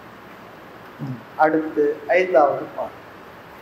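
An elderly man speaks briefly and calmly.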